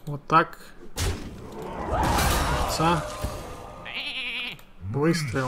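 Game sound effects whoosh and crash as a card is played.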